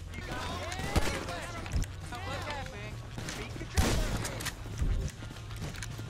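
Gunshots crack out several times.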